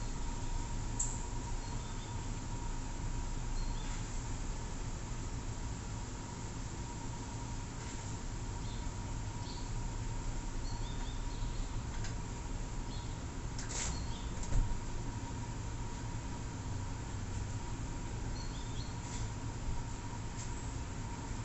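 Short electronic menu blips chime now and then.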